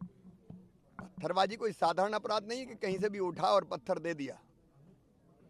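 A middle-aged man speaks firmly into close microphones.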